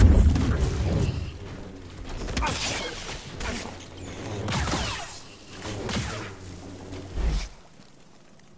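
Blades clash with sharp crackling hits.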